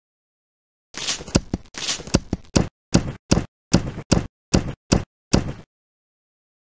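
An umbrella snaps shut and open with quick clicks.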